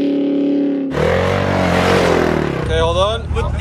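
A dirt bike engine revs loudly.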